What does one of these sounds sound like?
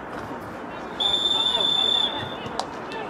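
A referee's whistle blows once, long and shrill.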